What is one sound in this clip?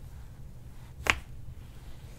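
A neck gives a sharp crack.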